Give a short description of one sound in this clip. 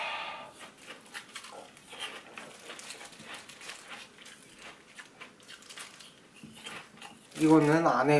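Ice crunches and cracks as a young man chews.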